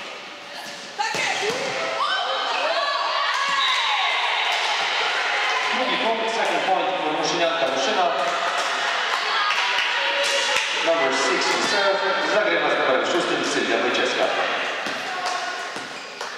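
Young women cheer and shout together with excitement.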